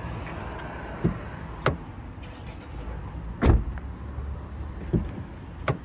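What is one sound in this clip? A car door handle clicks as it is pulled.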